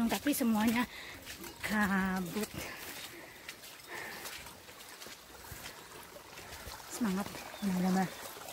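A young woman talks close by, with animation.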